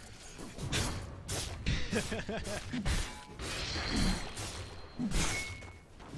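Weapons clash and magic effects crackle in a fight.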